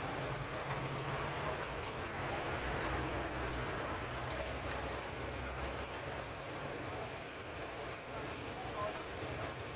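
A man rummages through items on a low shelf, rustling packets.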